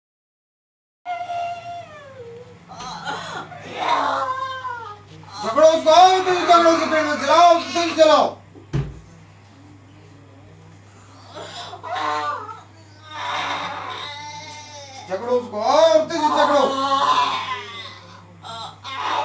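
A woman wails and cries out loudly nearby.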